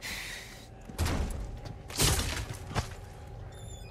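Wooden crates smash and splinter.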